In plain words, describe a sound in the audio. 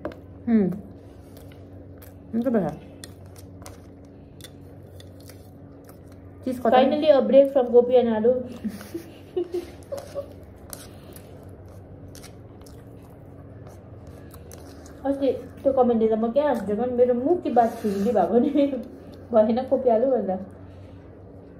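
Fingers scrape and squish rice in a bowl.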